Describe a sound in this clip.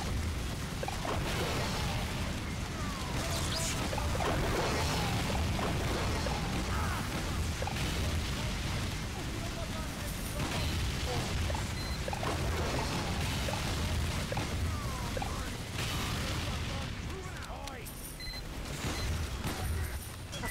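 Rapid gunfire rattles throughout.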